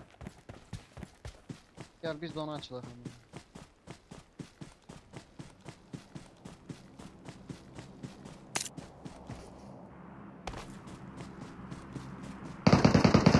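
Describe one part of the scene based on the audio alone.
Footsteps rustle quickly and steadily through grass.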